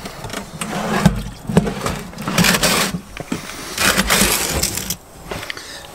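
A metal tray scrapes and clanks into an oven.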